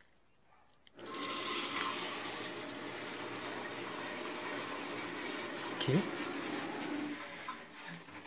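Water runs steadily from a shower into a bathtub.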